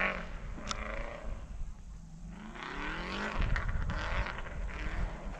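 A car engine revs hard in the distance, rising and falling in pitch.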